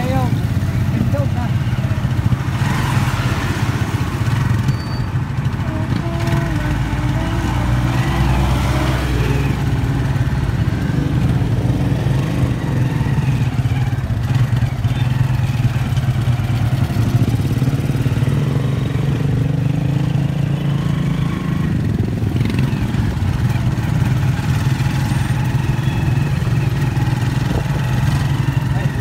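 Traffic passes on a busy road outdoors.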